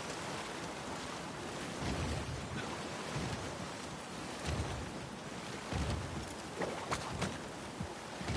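Water rushes and churns.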